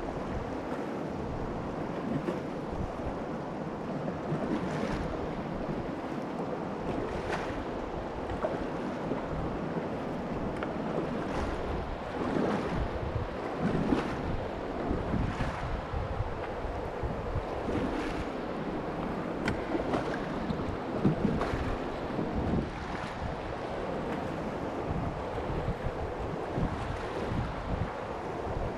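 River water rushes and splashes steadily around a kayak.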